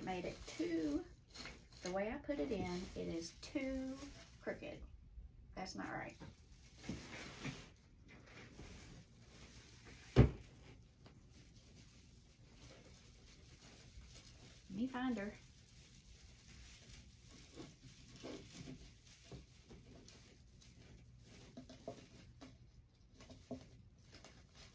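Wreath decorations rustle as a young woman handles them.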